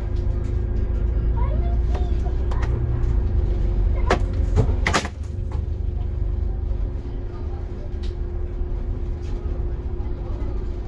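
A vehicle engine hums steadily from inside.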